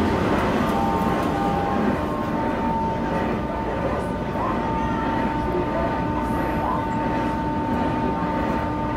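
A subway train rumbles and hums steadily.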